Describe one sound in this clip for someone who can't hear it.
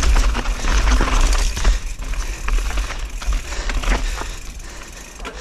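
Bicycle tyres crunch and rattle over loose rocks.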